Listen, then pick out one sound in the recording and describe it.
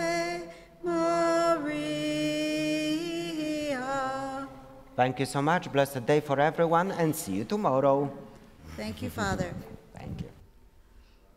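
Voices sing a hymn together in a large echoing hall.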